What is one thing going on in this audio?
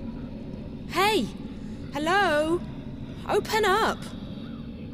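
A young woman shouts loudly, calling out.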